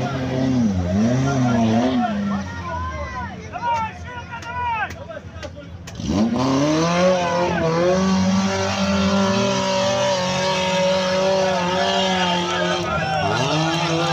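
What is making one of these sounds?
An engine revs hard and roars, rising and falling in pitch.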